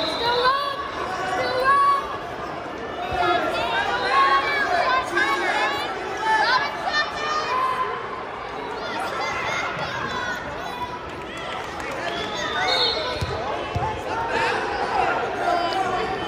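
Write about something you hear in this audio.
A crowd of spectators shouts and cheers throughout a large echoing hall.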